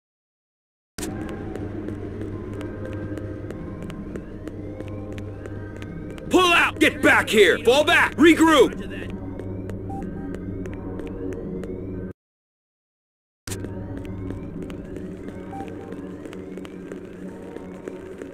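Footsteps tap quickly on a hard floor.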